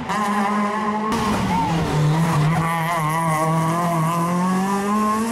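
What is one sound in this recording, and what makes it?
A rally car engine roars loudly, its pitch rising and falling as it shifts gears.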